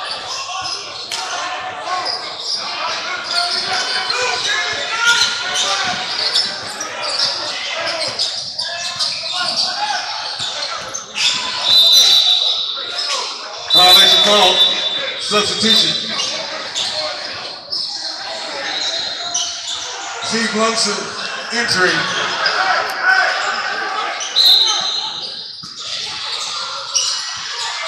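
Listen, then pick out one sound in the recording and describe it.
Young players and spectators shout and call out in a large echoing gym.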